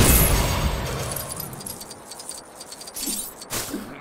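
Small coins jingle in quick, repeated chimes.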